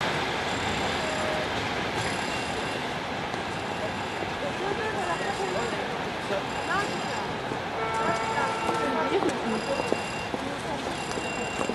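A train rumbles slowly away along the tracks.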